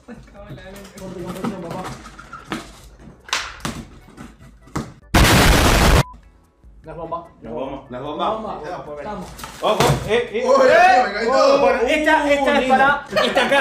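Young men talk and laugh with animation nearby.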